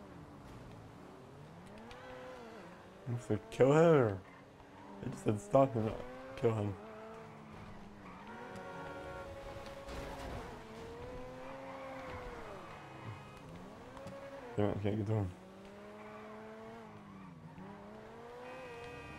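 A car engine revs and whines, rising and falling in pitch.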